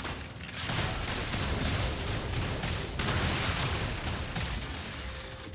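Game spell effects crackle and blast in a fight.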